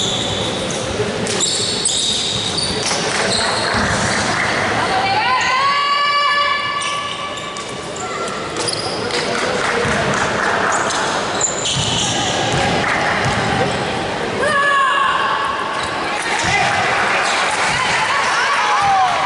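A crowd chatters and cheers in an echoing gym.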